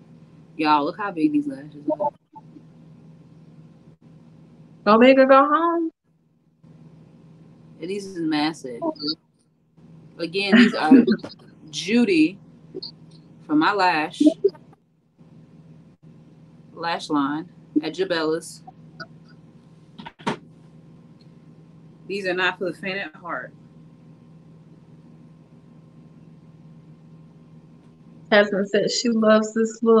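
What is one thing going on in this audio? A second young woman answers over an online call.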